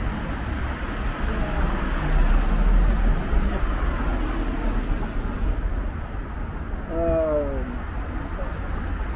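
Steady traffic hums outdoors.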